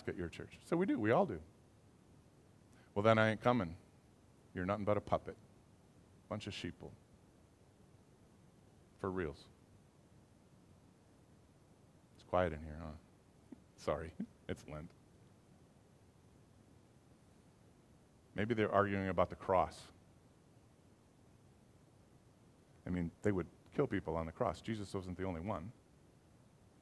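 A middle-aged man speaks calmly in short phrases with long pauses.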